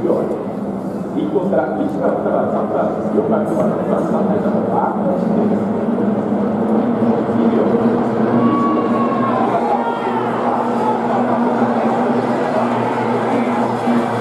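Several racing boat engines roar and drone as the boats speed across the water.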